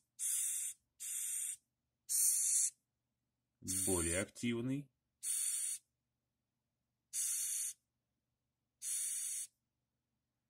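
A cockroach hisses in short, sharp bursts.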